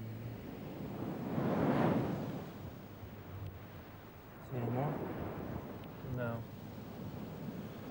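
A man digs with his hands in loose sand.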